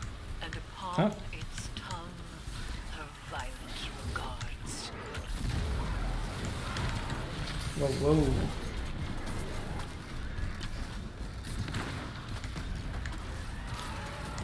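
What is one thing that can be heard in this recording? Gunshots crack and boom in a game.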